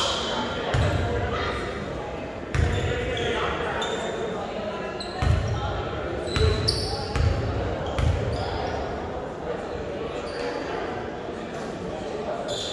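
A crowd chatters and murmurs in the stands.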